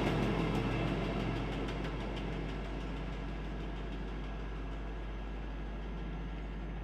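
A diesel rail vehicle rumbles past and fades into the distance.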